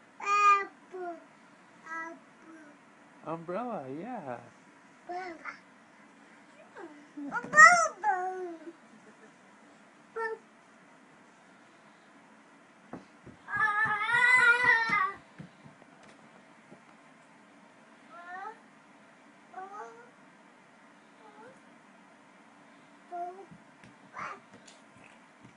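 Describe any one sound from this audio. A small toddler babbles and squeals nearby.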